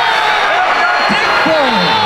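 A young man shouts triumphantly nearby.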